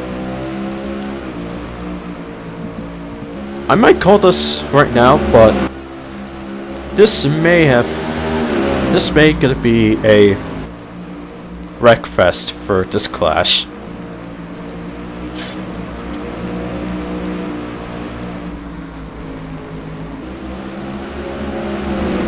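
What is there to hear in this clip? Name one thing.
Racing car engines roar steadily at high speed.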